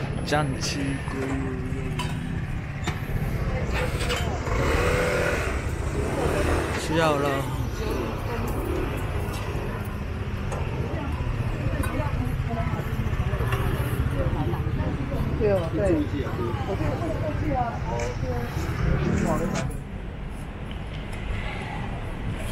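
A busy crowd chatters all around outdoors.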